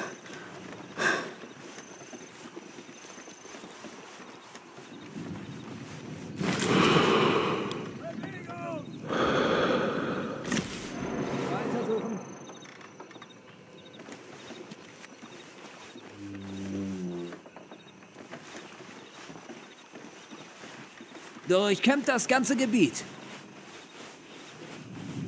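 A soldier shuffles and crawls over snow and wooden boards.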